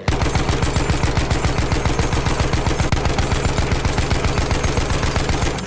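A mounted machine gun fires in a rapid continuous burst.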